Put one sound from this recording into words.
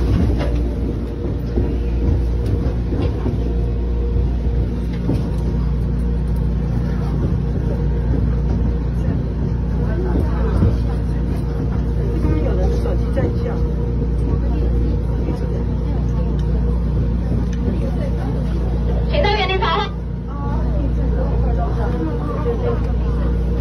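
A woman talks loudly close by.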